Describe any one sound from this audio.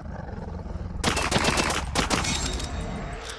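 A pistol fires several shots.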